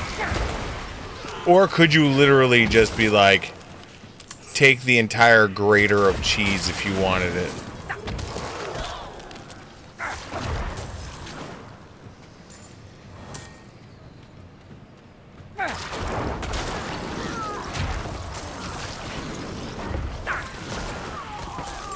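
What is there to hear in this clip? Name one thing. Game combat effects clash and crackle.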